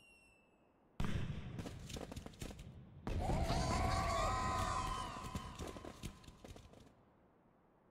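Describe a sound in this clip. Fireworks burst and crackle.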